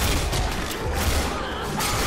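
A large monster roars up close.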